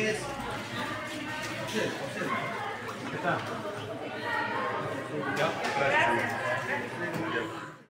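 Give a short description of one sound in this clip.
Several men and women talk over one another close by in a crowded room.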